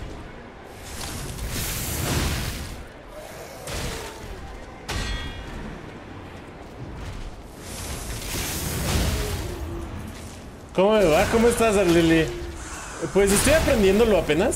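Metal blades clash and strike with sharp impacts.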